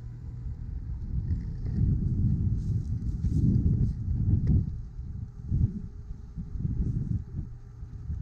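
Wind gusts and rumbles across the open ground.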